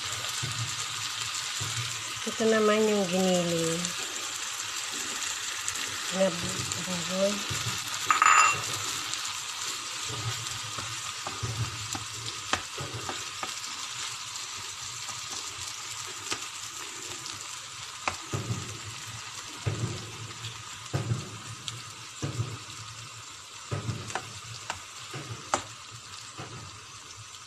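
Minced meat and chopped vegetables sizzle in a frying pan.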